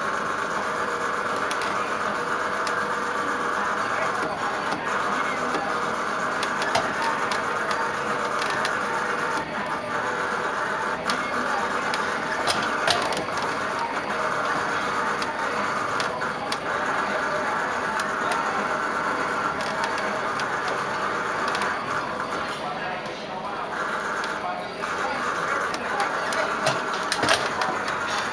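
A steering wheel creaks and clicks as hands turn it.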